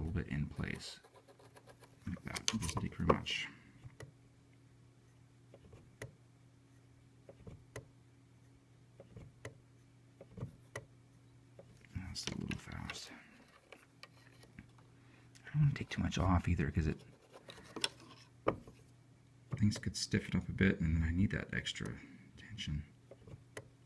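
A hand plucks and scrapes at piano strings and hammers.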